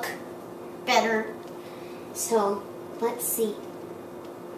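A young boy speaks in short bursts close by.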